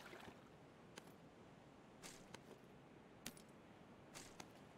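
Short sharp clicks sound now and then as items are picked up.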